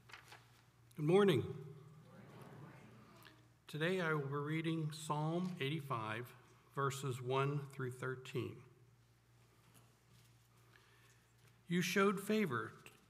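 A middle-aged man speaks slowly and solemnly through a microphone in a large echoing hall.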